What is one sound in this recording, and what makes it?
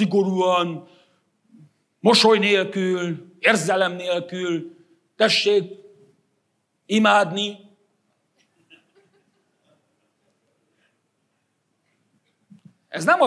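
A middle-aged man speaks with emphasis through a lapel microphone, pausing between phrases.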